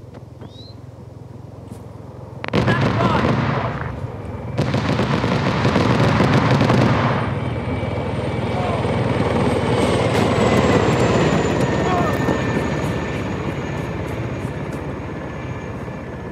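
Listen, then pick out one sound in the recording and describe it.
Footsteps crunch on gravel and grass.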